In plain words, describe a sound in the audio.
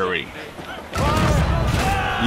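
Cannons boom in loud blasts.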